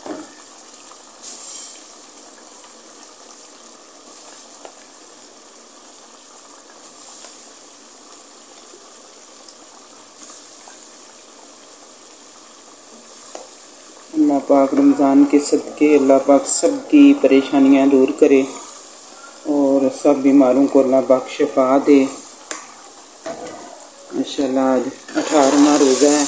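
A wooden spoon scrapes and stirs in a metal pot.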